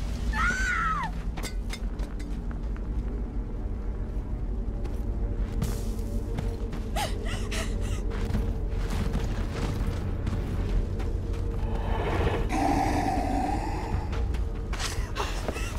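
Footsteps thud on hard ground.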